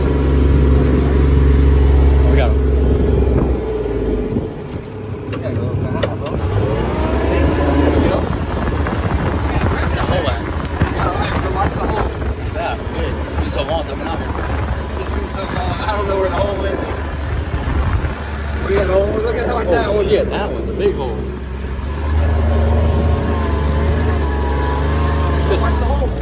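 A small utility vehicle's engine idles with a steady low rumble.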